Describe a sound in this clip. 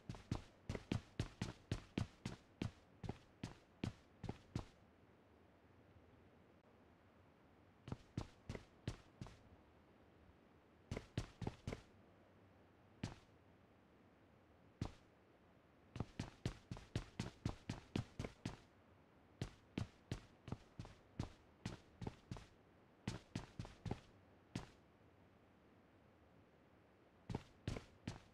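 Footsteps tap quickly across a wooden floor.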